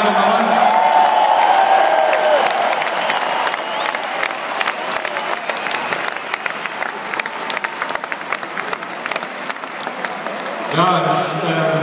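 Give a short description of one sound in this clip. A large crowd cheers and claps in an open stadium.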